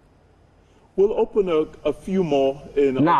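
A man speaks calmly and with animation into a microphone.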